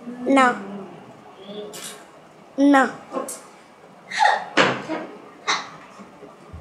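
A young girl talks playfully close by.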